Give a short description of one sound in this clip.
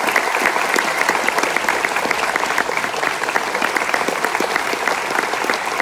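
A large audience applauds and cheers.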